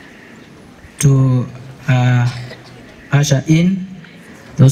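A man speaks slowly and deliberately into a microphone, heard through loudspeakers outdoors.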